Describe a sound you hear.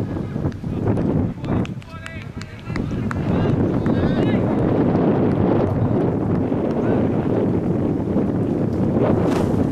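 Wind rumbles and gusts across an open field outdoors.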